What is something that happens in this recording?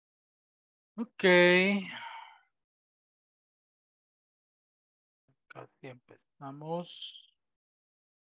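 A man speaks briefly through an online call, in short bursts.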